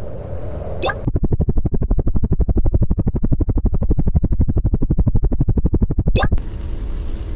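A toy helicopter's rotor chops rapidly.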